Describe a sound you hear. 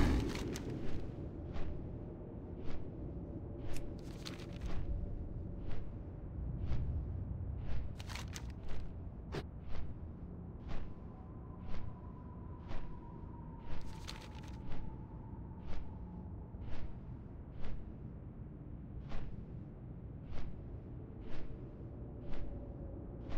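Large wings flap with steady, rhythmic whooshes.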